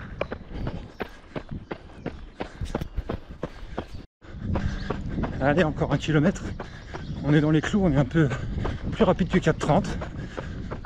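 Footsteps thud steadily on pavement as a runner jogs.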